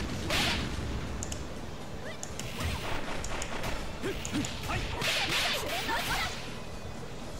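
Game fight effects whoosh and clash.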